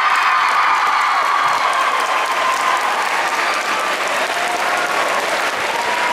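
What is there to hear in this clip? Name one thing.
Teenage girls squeal with excitement.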